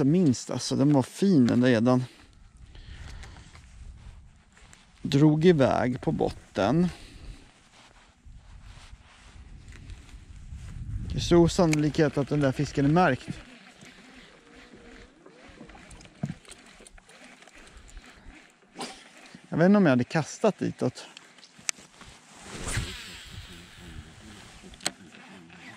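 A fishing reel clicks as its line is wound in.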